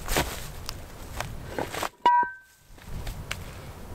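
A wooden board thuds onto the ground.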